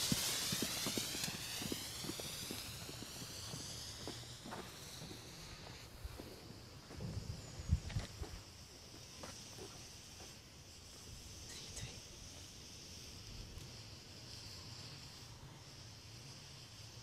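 Firework sparks crackle and pop.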